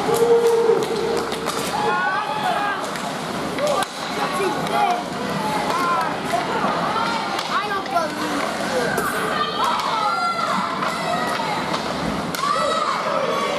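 Hockey sticks clack against the puck and ice.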